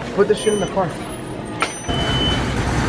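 A checkout machine beeps.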